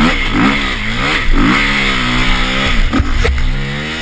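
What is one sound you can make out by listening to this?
A motorbike crashes and thuds onto the ground.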